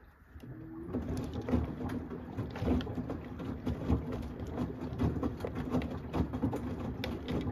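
Wet laundry tumbles and sloshes in a washing machine drum.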